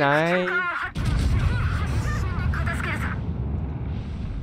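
Heavy ship guns fire with a deep, rolling boom.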